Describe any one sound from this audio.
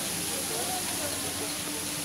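A fountain splashes into a pond.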